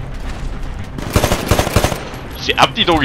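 Rapid gunfire rattles in a short burst.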